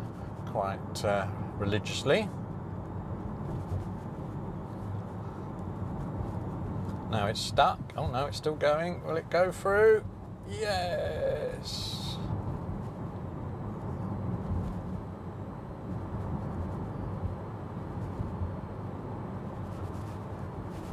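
Tyres rumble on a wet road, heard from inside an electric car.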